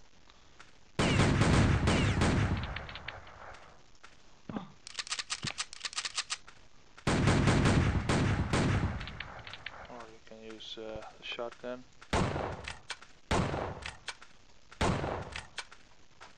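Revolver shots crack in quick bursts, with loud booming blasts.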